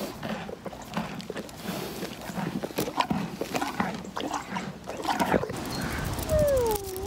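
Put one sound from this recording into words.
A horse snuffles and breathes close by.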